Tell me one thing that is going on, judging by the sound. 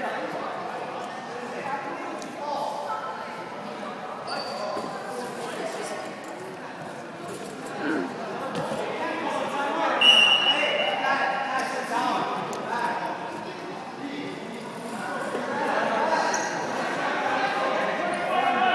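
Young men and boys talk and call out across a large echoing gym.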